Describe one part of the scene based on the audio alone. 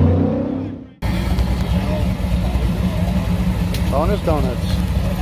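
A car engine rumbles as a car drives past.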